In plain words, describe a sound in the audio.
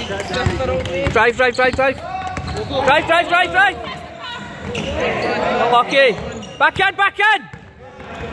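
Sneakers squeak sharply on a wooden basketball court.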